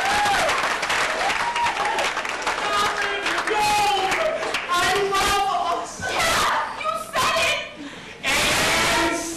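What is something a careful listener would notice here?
A woman sings on a stage.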